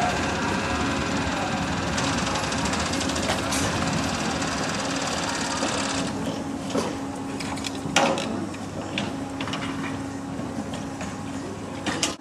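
Metal clanks and rattles as workers lower a heavy stall panel.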